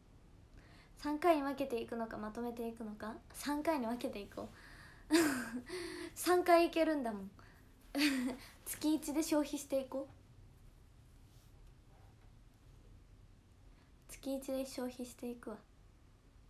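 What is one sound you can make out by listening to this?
A young woman talks calmly and cheerfully, close to a microphone.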